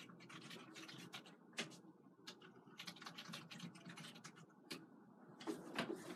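A stiff brush scrapes and swishes through thick paint.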